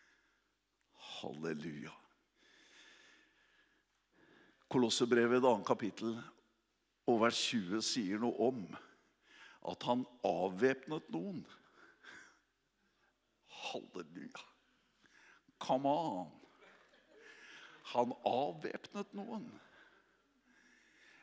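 A middle-aged man speaks with animation into a microphone, heard through loudspeakers in a large room.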